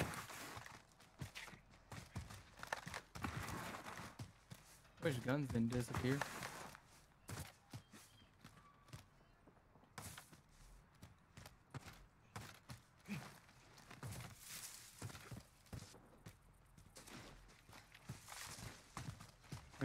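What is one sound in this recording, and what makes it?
Footsteps run across grass and gravel.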